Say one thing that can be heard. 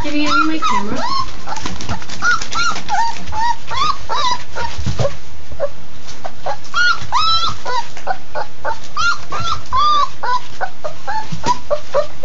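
Puppies whine and yelp in high, rapid squeals.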